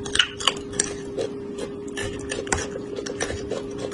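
Wooden skewers click against a metal tray.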